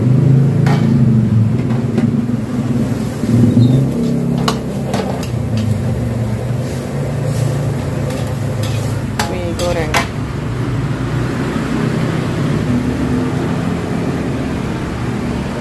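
A gas burner roars steadily under a wok.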